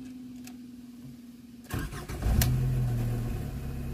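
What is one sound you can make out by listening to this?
A car engine starts up.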